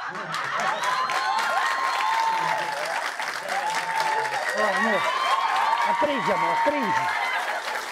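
A young woman shouts excitedly.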